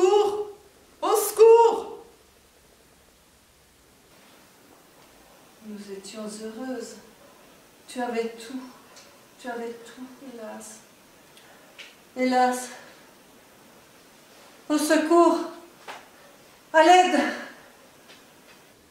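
An older woman speaks dramatically, with some echo.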